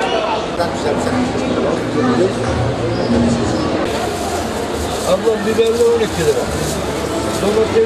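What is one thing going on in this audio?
A crowd chatters in a busy market, outdoors.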